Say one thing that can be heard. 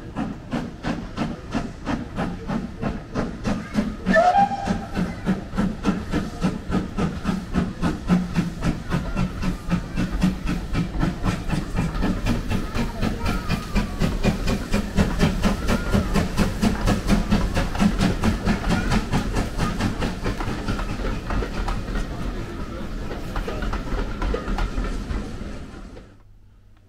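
Carriage wheels rumble and clatter on the rails.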